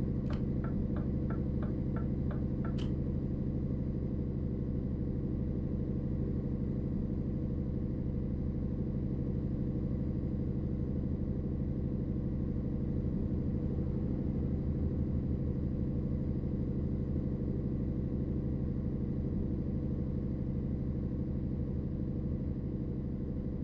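A truck engine hums in a low, steady drone.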